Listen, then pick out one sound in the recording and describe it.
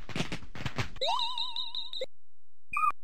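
An electronic chime warbles and rings briefly.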